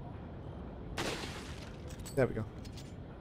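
A rifle shot cracks.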